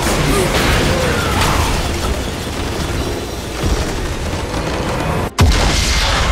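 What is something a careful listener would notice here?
Magic blasts and crackling spell effects clash in a fierce battle.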